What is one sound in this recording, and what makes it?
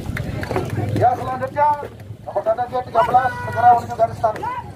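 A group of young people call out together in unison.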